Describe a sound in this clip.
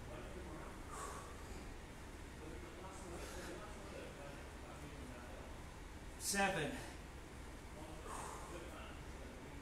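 A man breathes hard in short bursts.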